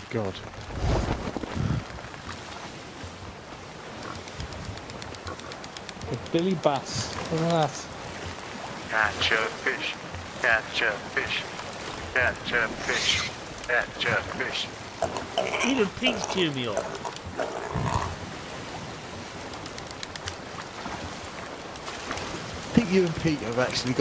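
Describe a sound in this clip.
Waves splash and roll on open water.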